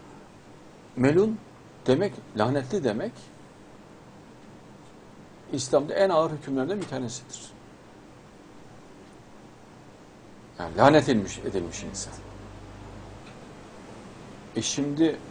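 A middle-aged man speaks calmly in short bursts with pauses, close to a microphone.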